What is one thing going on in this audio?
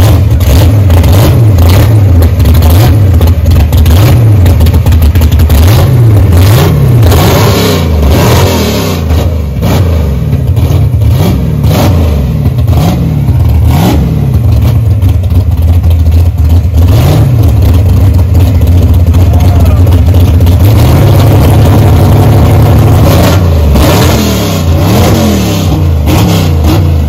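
A muscle car engine revs up sharply again and again.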